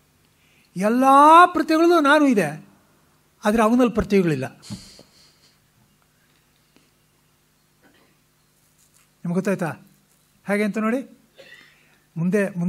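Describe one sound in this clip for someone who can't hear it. An elderly man chants in a melodic voice, in short phrases with pauses.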